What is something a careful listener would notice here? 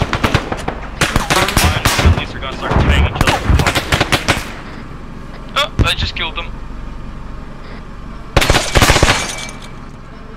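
A machine gun fires in rapid bursts.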